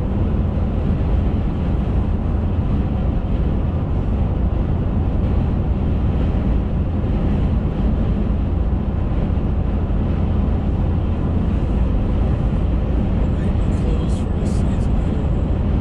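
A car drives steadily along a highway, with a constant low rumble of the road and engine.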